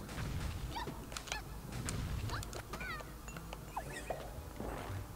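Short bouncy video game sound effects chirp as a character jumps.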